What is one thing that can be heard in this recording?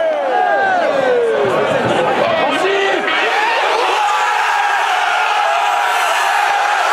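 A large crowd sings and chants loudly in an echoing stadium.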